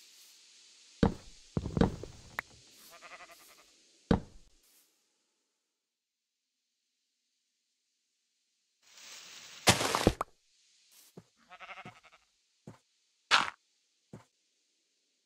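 Blocks thud and crunch as they are placed and broken.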